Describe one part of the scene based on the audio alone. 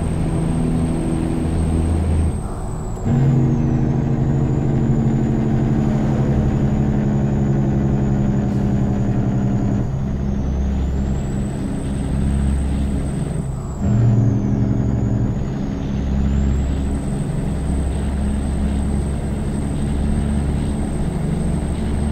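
An inline-six diesel truck engine pulls under load with a deep, steady drone.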